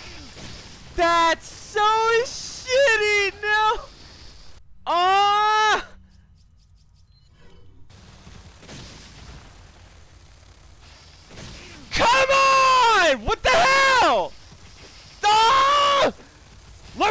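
A man shouts and exclaims loudly into a close microphone.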